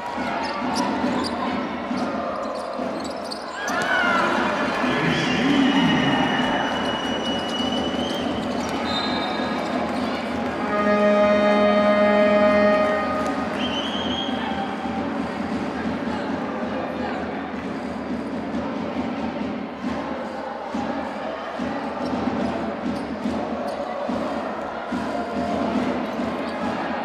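A crowd cheers and murmurs in a large echoing hall.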